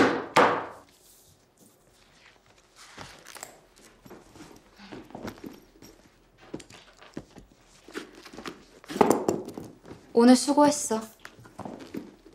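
A young man speaks softly and close by.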